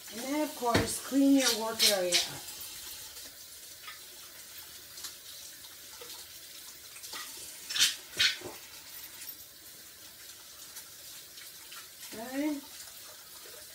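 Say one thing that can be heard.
A young girl speaks briefly nearby.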